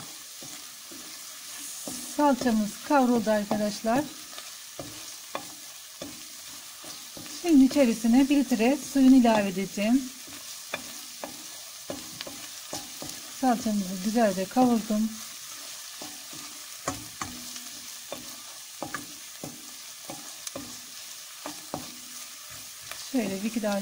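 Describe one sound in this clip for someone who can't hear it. Food sizzles gently in hot oil.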